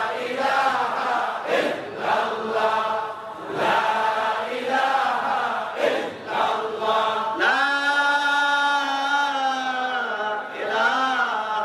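A man chants and sings passionately into a microphone, heard through a loudspeaker.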